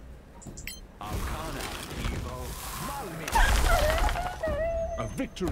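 A blast of icy magic whooshes and crackles.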